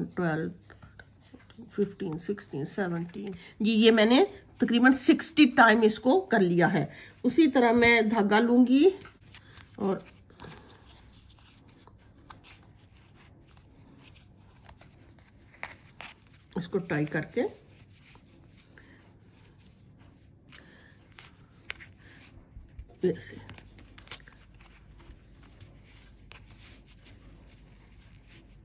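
Yarn rustles softly against stiff card.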